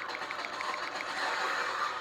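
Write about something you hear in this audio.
Fire whooshes in a burst of flame.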